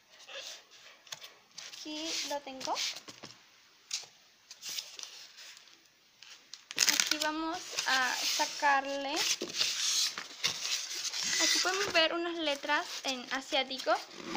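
Paper rustles as it is lifted and folded.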